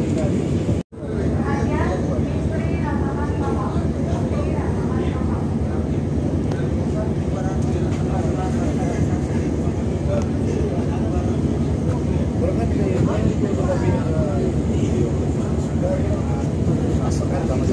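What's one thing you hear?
A ship's engine rumbles steadily and low.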